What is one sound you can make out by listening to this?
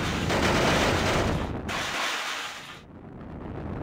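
A rocket engine roars with a loud rushing blast.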